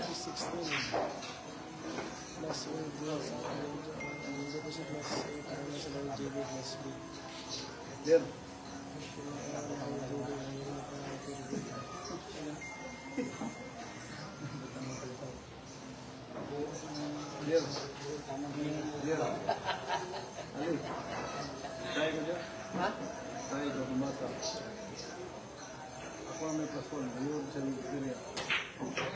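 A crowd of men and women chatters and talks nearby.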